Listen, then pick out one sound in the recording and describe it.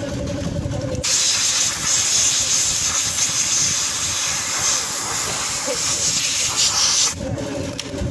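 Compressed air hisses loudly from a blow nozzle.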